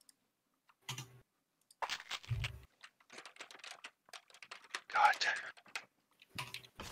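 Short electronic game sounds blip and chime in bursts.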